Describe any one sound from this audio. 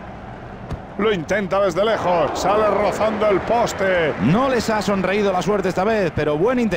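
A stadium crowd roars loudly as a shot flies toward goal.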